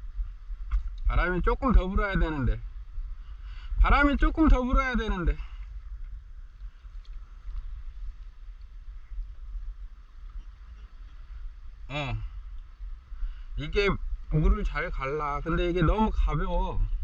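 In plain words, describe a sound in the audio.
A man talks calmly across the water.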